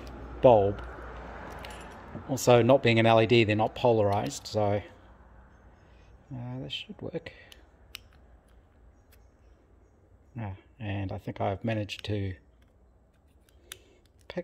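Small metal parts click and tap together under a hand.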